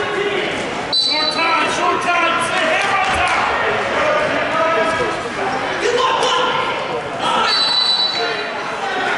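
A referee blows a short whistle.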